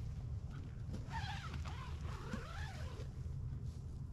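A young woman speaks briefly nearby.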